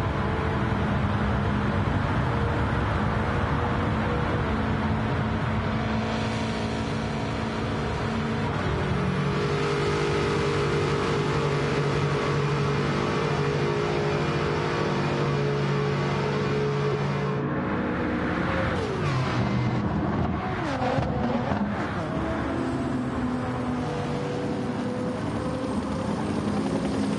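Racing car engines roar loudly at high speed.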